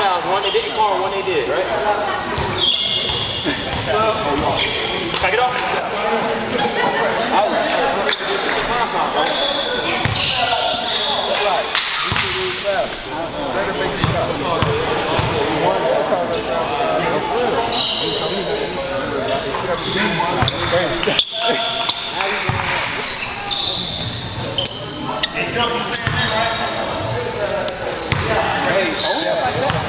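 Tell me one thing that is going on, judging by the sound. Young men talk and call out to each other in a large echoing gym.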